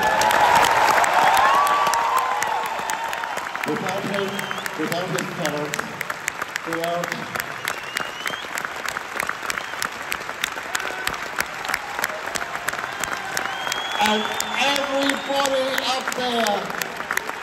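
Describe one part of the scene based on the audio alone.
Audience members clap.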